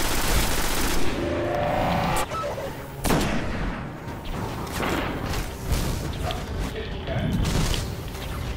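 A rifle fires loud gunshots.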